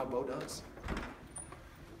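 A door latch clicks open.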